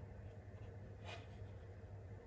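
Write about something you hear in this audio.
A figure knocks lightly once on a hard surface.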